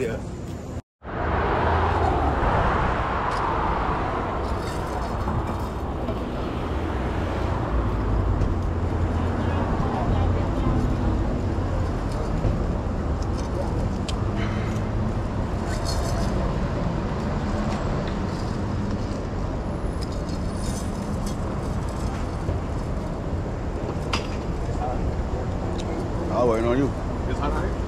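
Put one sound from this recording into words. Traffic rumbles steadily on a city street outdoors.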